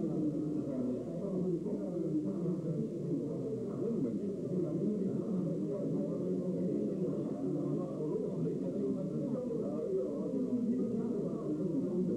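An elderly man talks with animation up close.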